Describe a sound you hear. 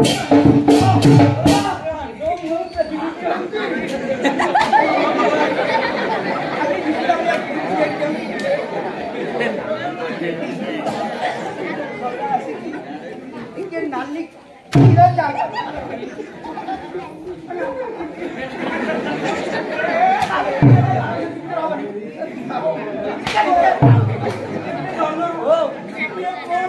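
A large crowd murmurs and chatters outdoors.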